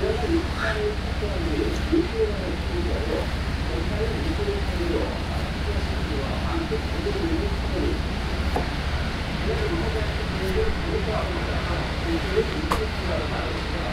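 A knife slices through raw meat.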